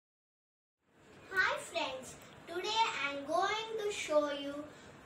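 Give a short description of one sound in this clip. A young girl speaks close by.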